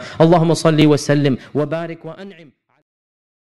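A man speaks calmly into a microphone, with a slight echo.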